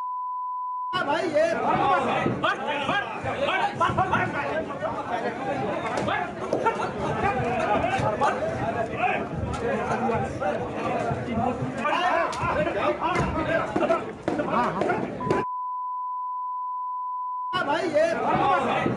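A crowd of men shout and argue loudly.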